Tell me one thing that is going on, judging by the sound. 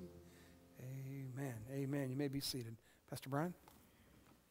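A woman sings into a microphone in a large echoing hall, holding her final notes.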